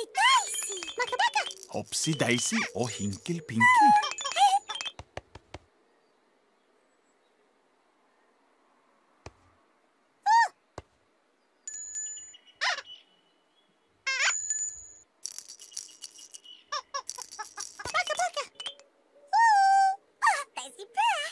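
Playful characters chirp and squeak in high, sing-song voices.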